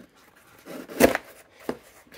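A cardboard package thuds softly as it is set down on a table.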